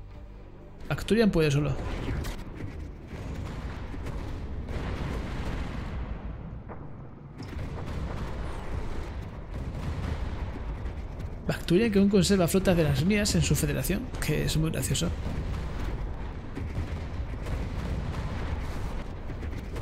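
Laser weapons fire and explosions rumble in a space battle.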